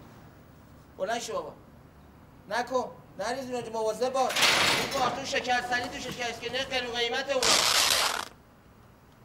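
A middle-aged man speaks with urgency, close by.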